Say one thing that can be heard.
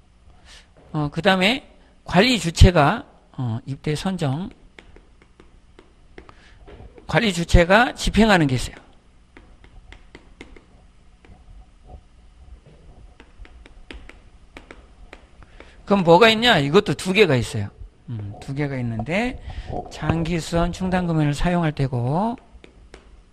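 A man speaks calmly through a microphone, in short bursts.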